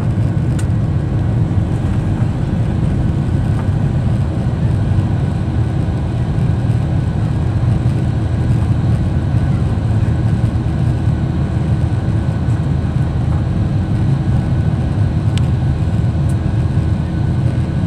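Jet engines roar loudly and steadily as an airliner climbs after takeoff.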